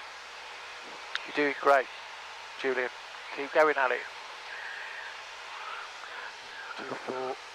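A man speaks calmly over a headset intercom.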